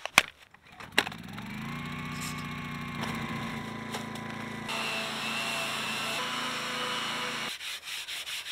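A small generator starts and hums steadily.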